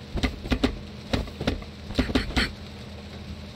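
Fists and arms strike a wooden practice dummy with sharp knocks.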